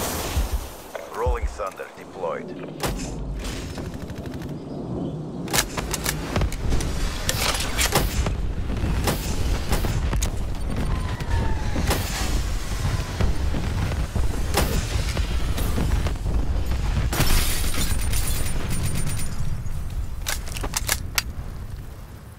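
Gunfire rattles in rapid, repeated bursts.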